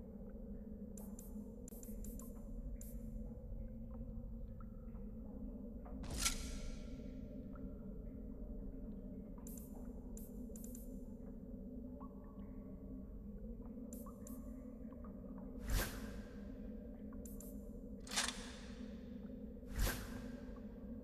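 Short menu clicks and swooshes sound as selections change.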